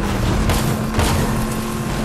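A game vehicle lands with a thud.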